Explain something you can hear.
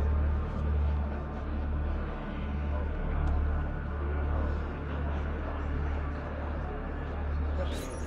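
Footsteps shuffle slowly on a stone floor.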